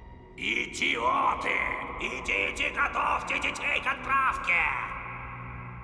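An elderly man exclaims in alarm.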